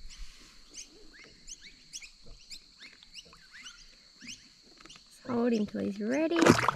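Water laps and splashes softly as a fish is eased back into it.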